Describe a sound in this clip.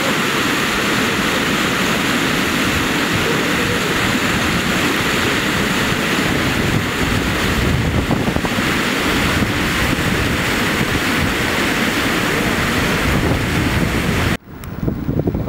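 Floodwater rushes and churns over rapids.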